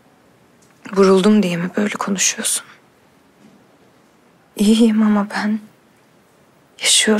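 A young woman speaks softly and sadly on a phone, close by.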